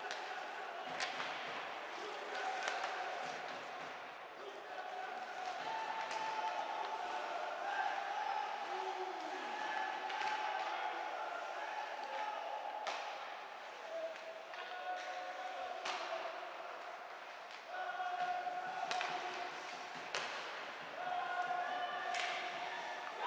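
Hockey sticks sharply smack a puck now and then.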